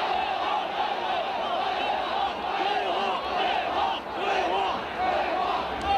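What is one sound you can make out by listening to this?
A young man shouts through a megaphone.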